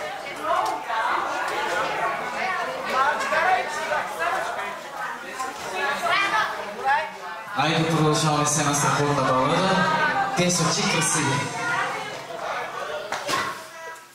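A group of men and women talk and laugh loudly close by.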